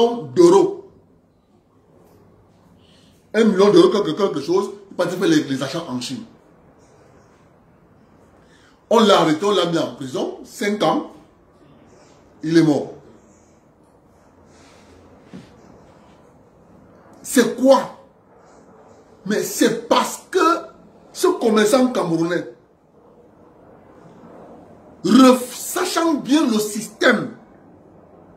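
A man speaks with animation in bursts, close to a microphone, with pauses between phrases.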